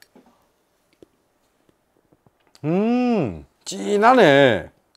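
A spoon clinks against a glass.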